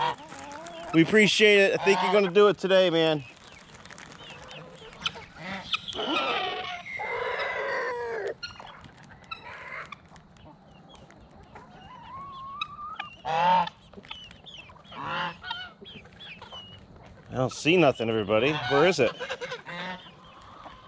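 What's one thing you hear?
Domestic geese honk loudly.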